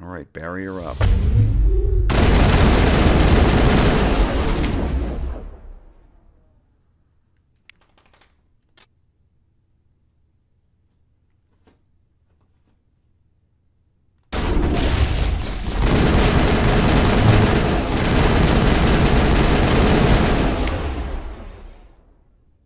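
A powerful electric blast crackles and roars.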